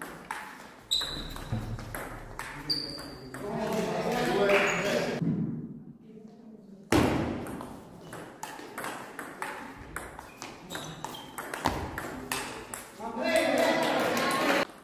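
A table tennis ball clicks back and forth on paddles and the table in a large echoing hall.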